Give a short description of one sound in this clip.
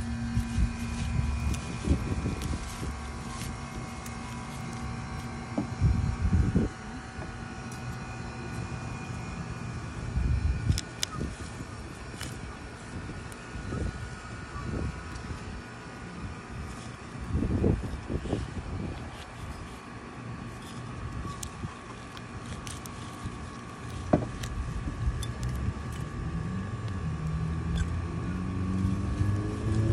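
Hands rustle through dense leafy plants.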